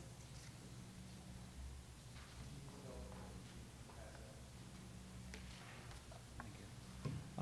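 A middle-aged woman speaks quietly into a microphone.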